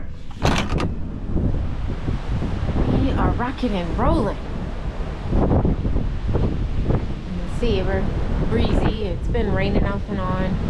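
Strong wind blows and buffets in gusts.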